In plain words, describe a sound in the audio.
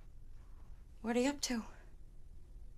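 A woman asks a short question calmly nearby.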